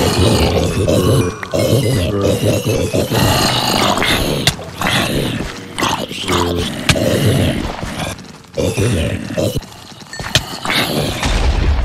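A sword strikes creatures with sharp hits.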